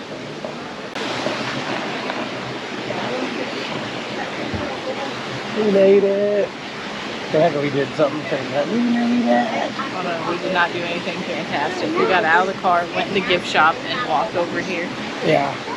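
Water splashes and rushes steadily outdoors.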